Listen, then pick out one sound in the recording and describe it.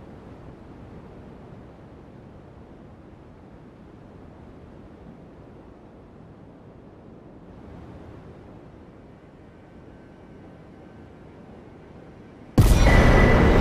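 Wind howls steadily in a blizzard.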